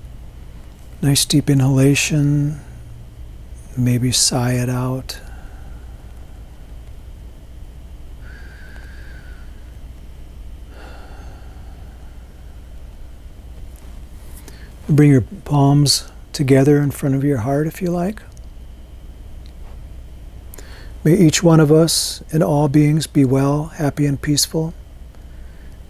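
A middle-aged man speaks calmly and slowly, close to a microphone, with long pauses.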